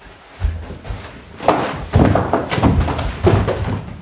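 Shoes thud as they land on the floor.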